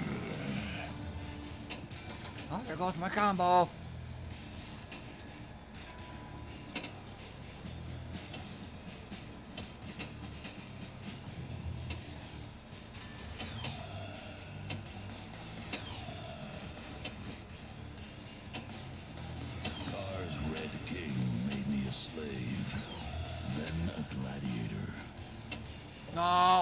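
Electronic pinball sounds chime and clatter over music.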